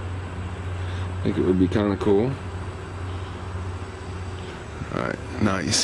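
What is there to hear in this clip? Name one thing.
A lighter's flint wheel clicks as it is flicked.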